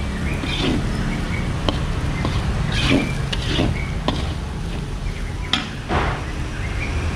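A metal spatula scrapes and stirs food in a wok.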